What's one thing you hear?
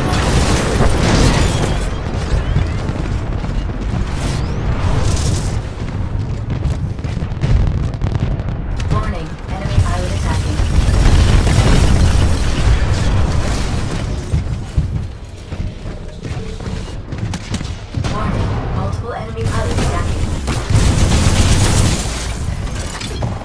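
Heavy guns fire in rapid bursts.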